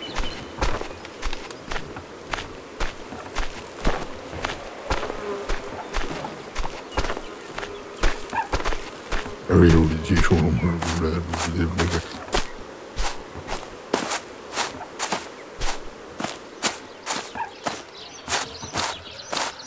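A horse's hooves clop steadily on soft ground.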